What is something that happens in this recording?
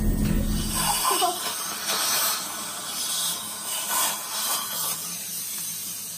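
A dental suction tube hisses and slurps.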